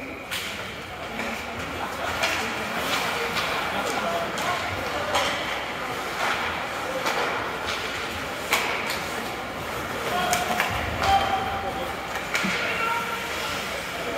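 Skates scrape and carve across ice.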